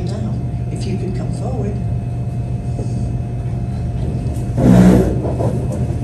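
An elderly woman speaks through a microphone in a hall.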